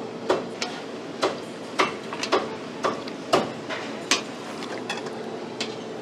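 A ladle stirs and splashes in simmering broth.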